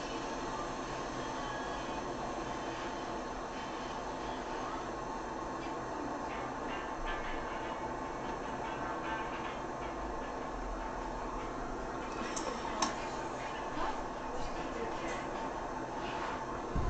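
A city bus engine hums as the bus drives along.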